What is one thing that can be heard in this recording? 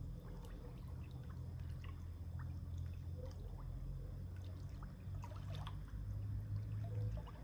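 Water laps and splashes softly as a person swims in a pool.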